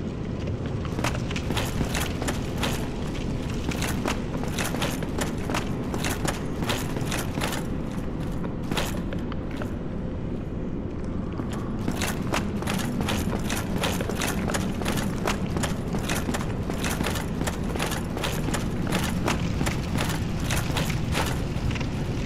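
Armored footsteps clank on stone.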